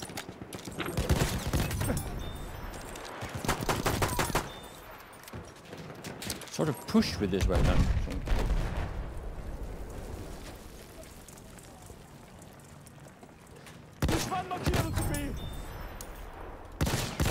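Rifle shots crack out, one at a time.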